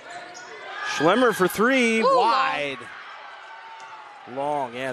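Spectators shout and cheer loudly.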